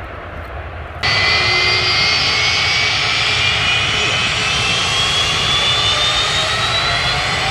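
The jet engines of a Boeing 757 whine, rising in pitch.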